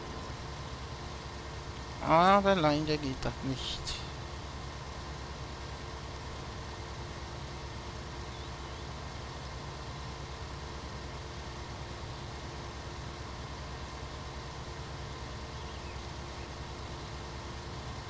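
A combine harvester's engine drones while it harvests grain.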